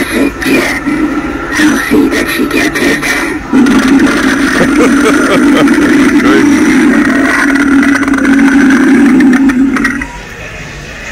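A doll toy growls in a loud, harsh, rasping voice.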